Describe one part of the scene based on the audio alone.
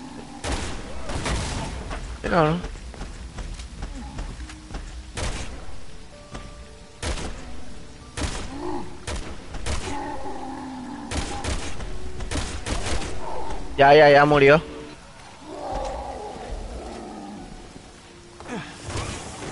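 Gunshots fire in sharp, repeated bursts.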